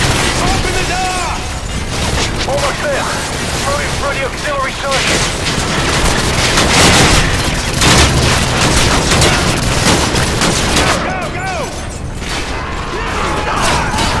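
A man shouts urgently over a radio.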